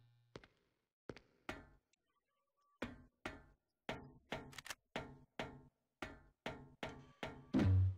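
Footsteps clang on metal stairs and a hard floor.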